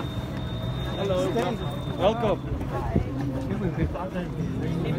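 Adults chat nearby in a crowd.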